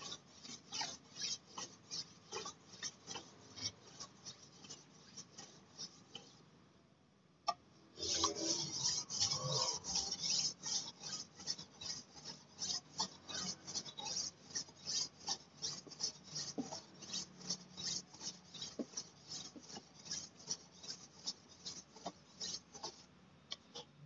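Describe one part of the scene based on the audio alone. A machete blade scrapes in fast strokes on a whetstone.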